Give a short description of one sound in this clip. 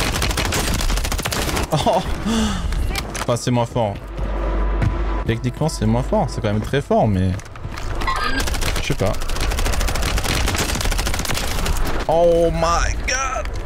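Rifle shots ring out in a game.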